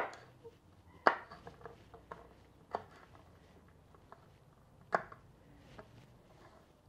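A knife chops green beans on a wooden board.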